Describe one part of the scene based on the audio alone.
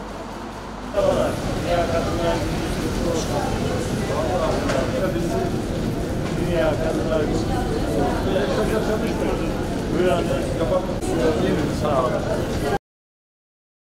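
Many women chatter and talk over one another in a busy room.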